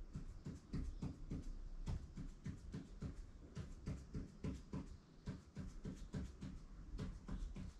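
A pen taps and scratches quickly on a hard surface.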